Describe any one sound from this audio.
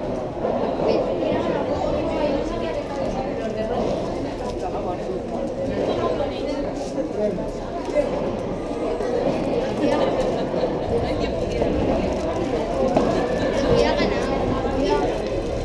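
A crowd of people chatter in a large echoing hall.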